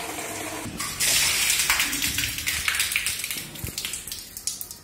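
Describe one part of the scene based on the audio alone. Water splashes and pours out.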